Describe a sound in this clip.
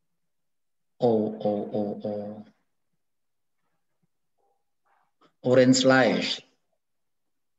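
A man speaks calmly through an online call microphone, in short phrases with pauses.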